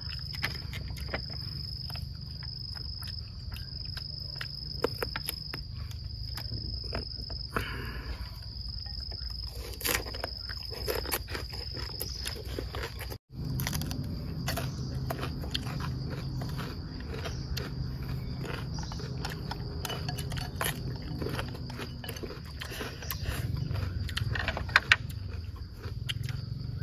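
Two men crunch and chew food with their mouths close by.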